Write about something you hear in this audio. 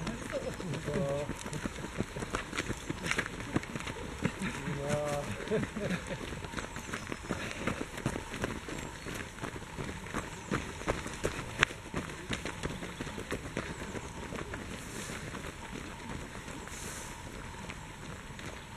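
Runners' footsteps crunch and pad on a leafy dirt path.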